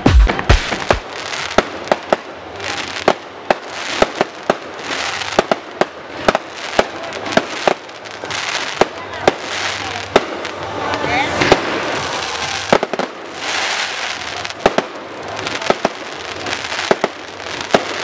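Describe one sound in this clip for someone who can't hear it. Fireworks crackle and fizz as they burst.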